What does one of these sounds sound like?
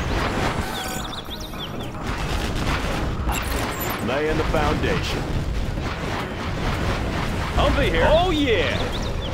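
Explosions and gunfire rumble in a battle.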